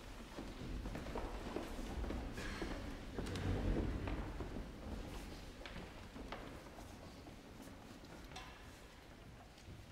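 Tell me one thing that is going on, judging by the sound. A string orchestra plays.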